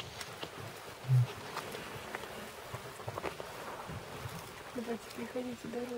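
A lioness brushes through dry grass and bushes close by.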